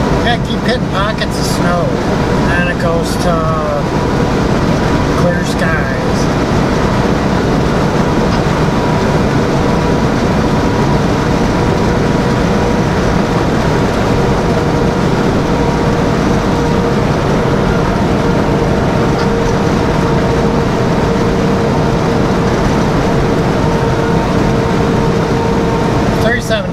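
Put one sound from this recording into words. A truck engine drones steadily while driving on a highway.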